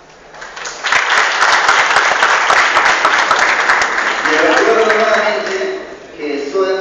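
A crowd claps and cheers loudly in a hall.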